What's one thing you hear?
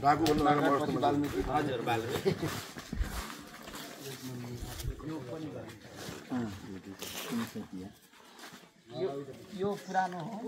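Several men talk with each other nearby, outdoors.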